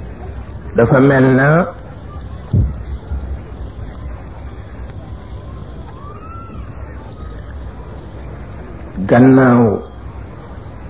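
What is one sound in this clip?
An elderly man calls out in a long, drawn-out chant through a microphone.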